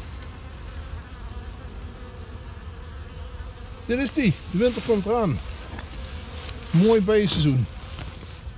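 Honeybees buzz around a hive entrance.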